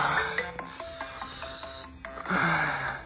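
A phone alarm rings with a steady electronic tune, then stops.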